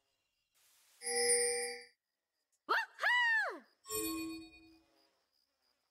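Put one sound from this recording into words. A game spell goes off with a bright chime.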